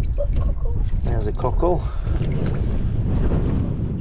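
Boots splash through shallow water.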